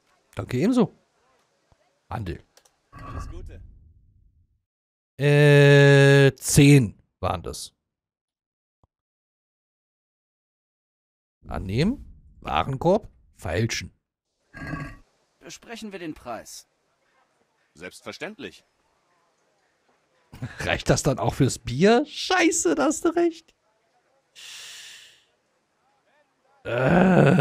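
A man talks close into a microphone, in short bursts.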